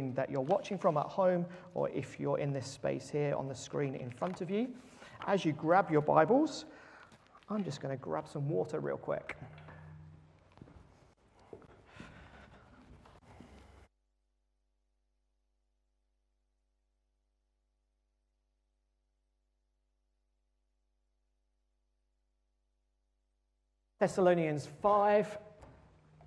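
A young man speaks clearly and steadily into a microphone.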